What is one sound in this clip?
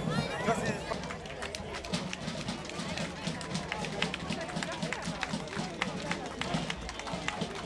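A crowd chatters outdoors.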